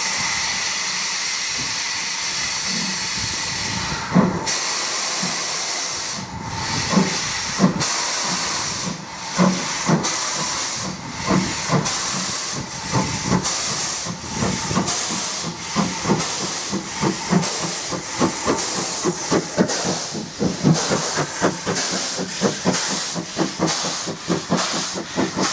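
A steam locomotive hisses loudly as steam vents.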